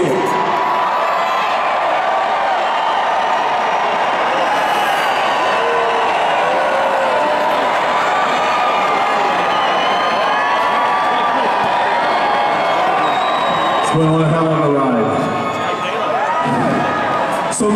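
Loud live music plays through big speakers in a huge echoing arena.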